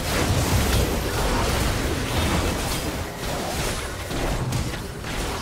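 Magic spells crackle and blast in quick bursts.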